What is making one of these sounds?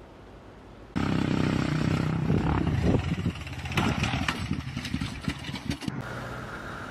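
A quad bike engine roars and revs.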